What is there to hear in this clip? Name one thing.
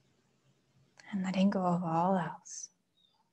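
A woman chants a single long note close by.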